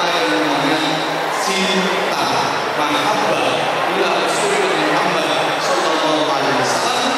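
A man speaks with animation through a microphone and loudspeakers in a large hall.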